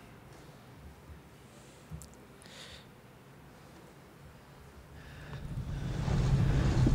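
A young man speaks quietly through a microphone.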